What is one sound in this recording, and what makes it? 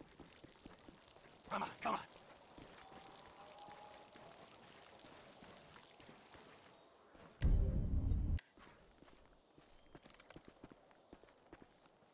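Footsteps tread slowly over dry ground.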